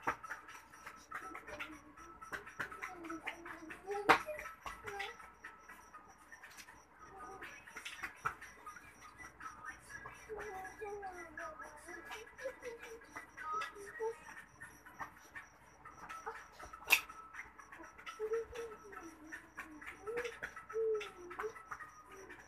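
A small child's feet stamp and shuffle on a tiled floor.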